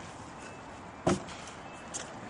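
A foot thumps onto the ground.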